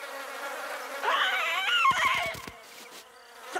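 A cartoon ostrich cries out with a wavering squawk.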